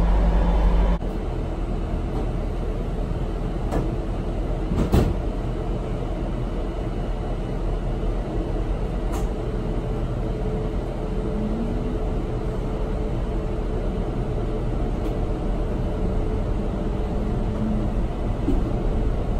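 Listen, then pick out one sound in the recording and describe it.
An electric bus motor hums softly as the bus drives.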